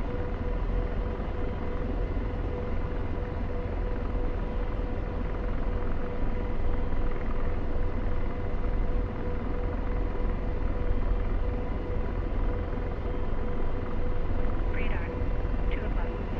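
A helicopter engine and rotor drone and whine steadily from inside the cockpit.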